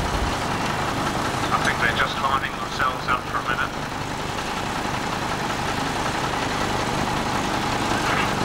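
A steam traction engine chuffs and rumbles steadily nearby.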